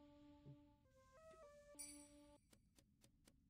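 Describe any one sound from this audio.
Electronic tones chime in short steps of changing pitch.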